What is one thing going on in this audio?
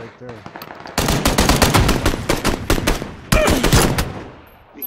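Rapid pistol shots ring out close by.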